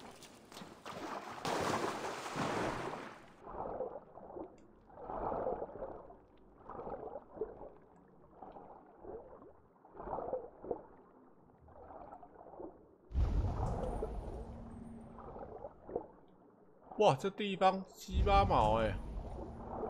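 Muffled bubbling and swishing of a swimmer moving underwater comes in repeated surges.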